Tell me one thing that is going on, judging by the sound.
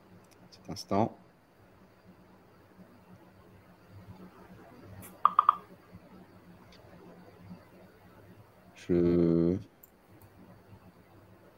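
A man speaks quietly over an online call.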